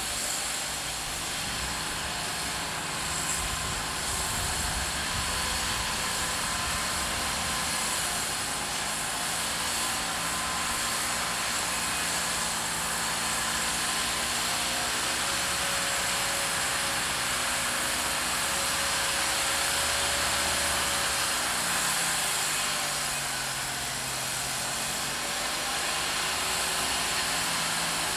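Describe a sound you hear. Tyres churn and crunch through deep snow.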